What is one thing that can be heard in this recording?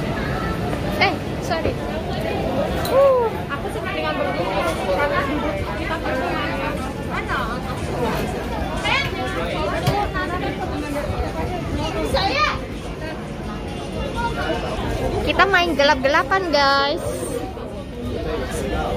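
Young women talk and call out excitedly nearby.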